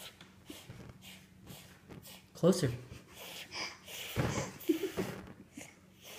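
A toddler blows out candles in short puffs.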